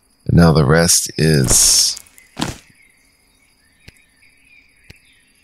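Soft interface clicks sound as game menus open and change.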